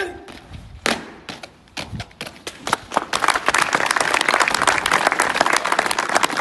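Boots stamp and march on hard ground.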